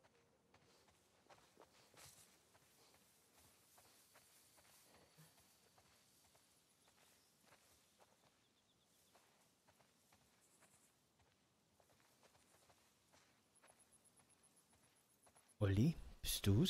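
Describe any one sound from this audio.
Footsteps swish through tall dry grass.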